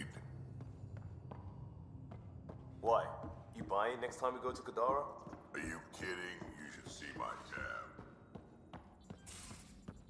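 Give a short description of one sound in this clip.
Footsteps run across a metal floor.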